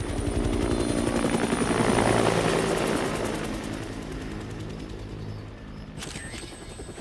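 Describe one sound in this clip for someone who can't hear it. A helicopter's rotor thumps loudly as it flies close by and moves away.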